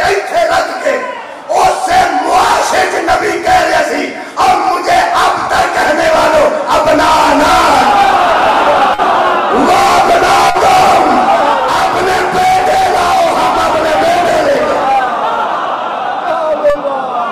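A man sings passionately through a microphone and loudspeakers.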